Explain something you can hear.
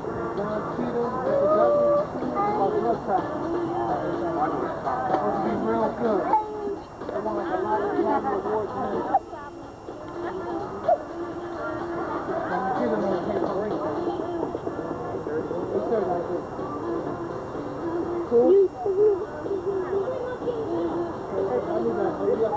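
Several men and women talk and chat outdoors, nearby.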